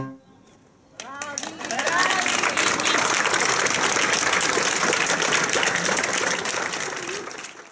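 A crowd outdoors claps and applauds loudly.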